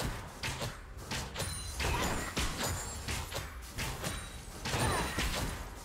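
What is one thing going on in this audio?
Game spell effects burst and clash in quick succession.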